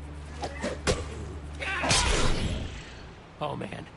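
A sword swishes and strikes with sharp hits.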